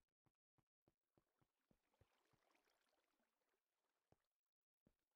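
Water trickles and flows nearby.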